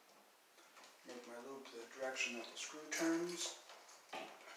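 A middle-aged man talks calmly, close by.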